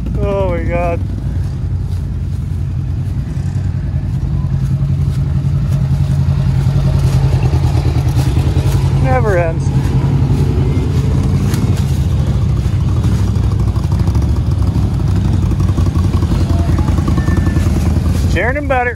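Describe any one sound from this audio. Off-road vehicle engines rumble steadily nearby.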